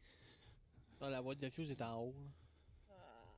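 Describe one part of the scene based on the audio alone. A young man speaks briefly with animation into a close microphone.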